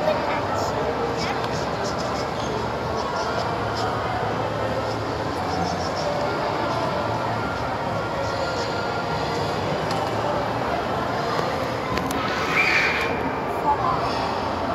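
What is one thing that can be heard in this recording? A paintbrush brushes softly over cardboard.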